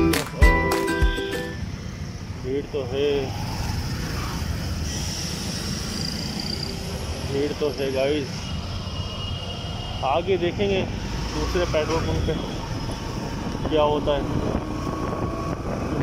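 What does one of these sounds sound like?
A motorbike engine hums steadily while riding along a road.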